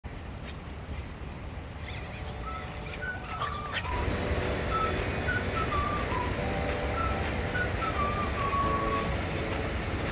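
Small dogs' paws patter on wooden steps and gravel.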